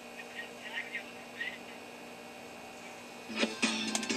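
A game menu beeps from a television speaker.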